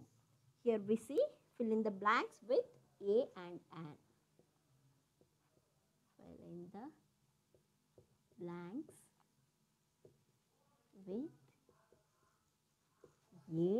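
A woman speaks slowly and clearly nearby, pausing between phrases.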